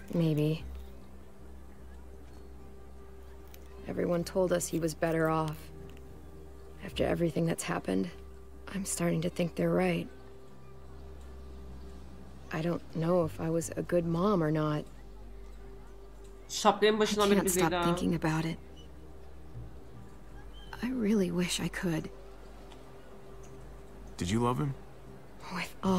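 A young woman speaks quietly and sadly, in short phrases with pauses.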